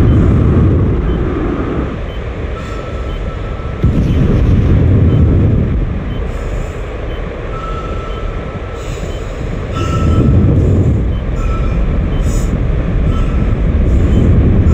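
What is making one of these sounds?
An energy beam roars with a deep, steady rumble.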